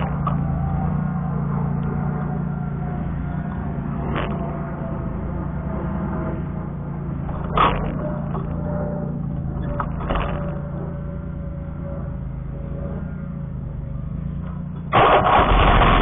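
A mower engine runs with a steady low drone.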